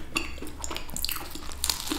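A woman bites into a crisp cookie close to the microphone.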